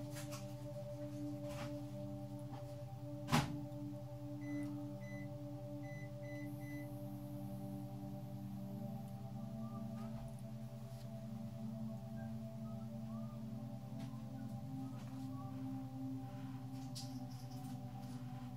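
A small rotary tool motor hums steadily.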